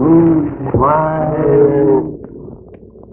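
A young woman cries out in alarm.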